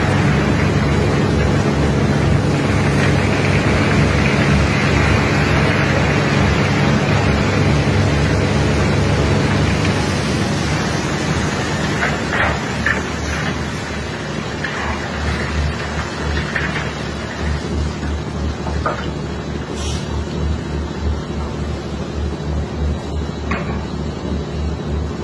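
Water sprays hard from a hose onto wet sand, hissing steadily.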